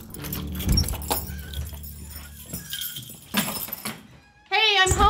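A door latch rattles and clicks as a door opens and closes.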